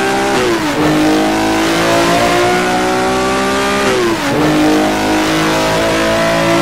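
A racing car engine roars steadily, dropping in pitch at each gear change and slowly climbing again.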